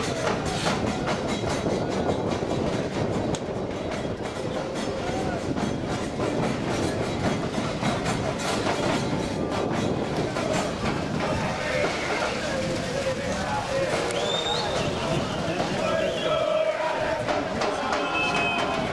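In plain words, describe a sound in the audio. Young men shout and call to each other across an open field, far off.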